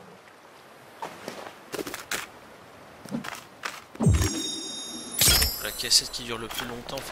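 Short menu clicks and chimes sound in quick succession.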